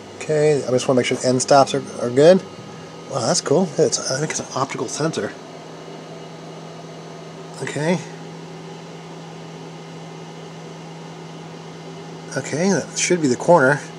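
A machine's fans hum steadily and quietly.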